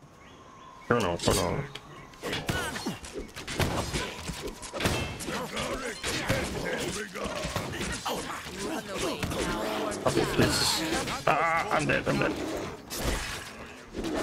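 Weapons clash and thud in a close fight.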